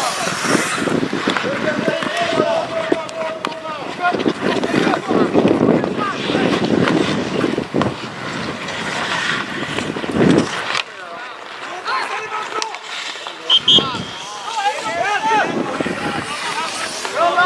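Players shout and call out to each other across an open-air ice rink.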